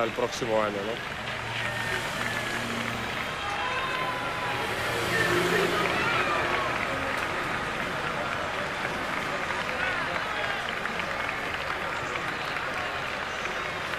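A crowd of spectators cheers from the roadside.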